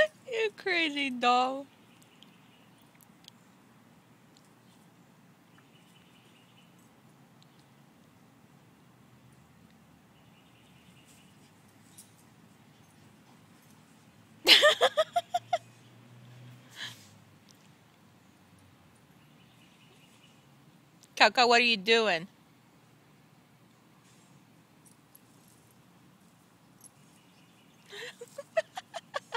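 A small dog yelps and whines in short, high bursts.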